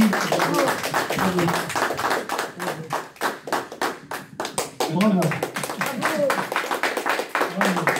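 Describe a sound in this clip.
An elderly man claps his hands.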